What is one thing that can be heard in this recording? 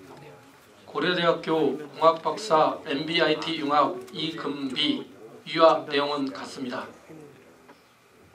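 A man speaks through a microphone over loudspeakers in an echoing hall.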